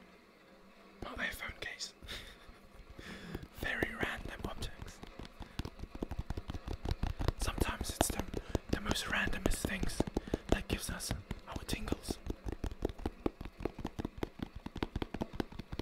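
A cardboard box and paper crinkle and tap close by.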